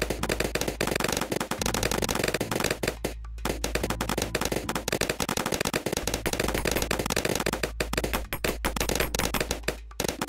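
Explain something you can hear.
Rapid game shots and balloon pops crackle without pause.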